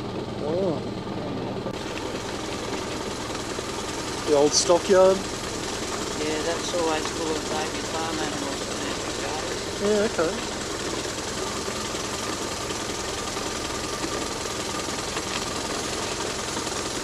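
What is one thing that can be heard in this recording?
A small motor hums steadily as a cart rolls along.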